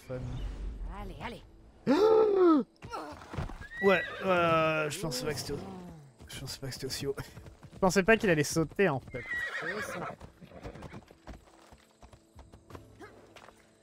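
A horse gallops, hooves thudding on the ground.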